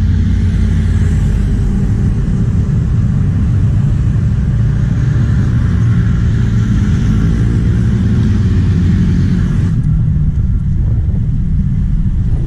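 Cars pass by on a road.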